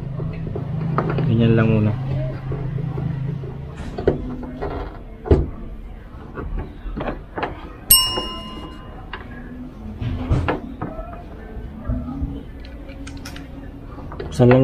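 Plastic clips click and snap as a tailgate's trim is pried loose.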